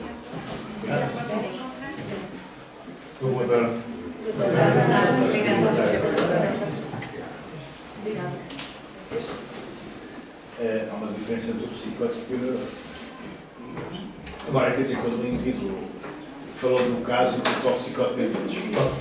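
Several adults talk and laugh nearby.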